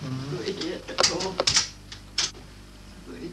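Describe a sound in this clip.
A wardrobe door clicks open.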